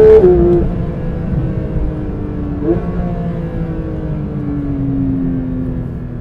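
A sports car engine roars loudly as the car drives past up close.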